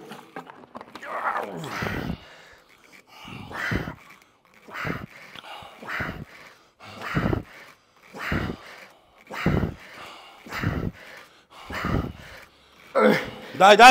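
A man grunts with effort in a steady rhythm.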